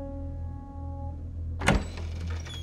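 A piano plays a few notes.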